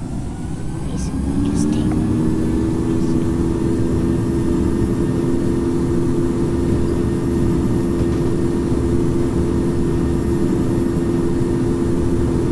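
Jet engines hum, then rise into a steady roar as they spool up.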